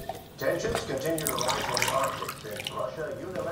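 Tea pours into a cup.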